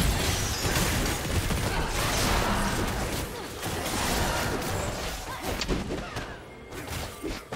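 Fantasy battle effects clash and burst rapidly.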